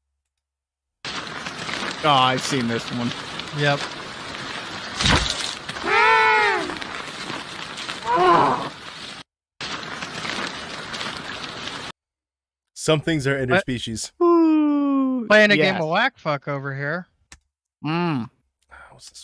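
Several men talk with animation over an online call.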